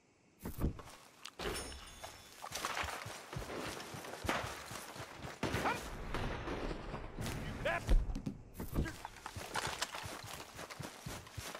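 Footsteps run through grass and dirt.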